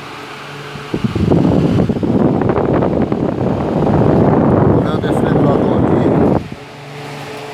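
An electric fan whirs and blows air loudly close by.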